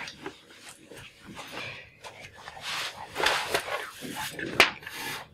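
A man speaks quietly up close.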